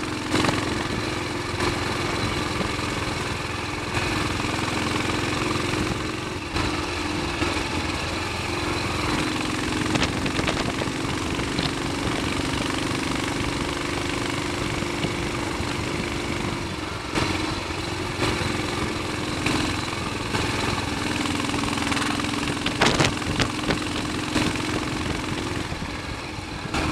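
A single-cylinder Royal Enfield Bullet thumps as it cruises along a lane.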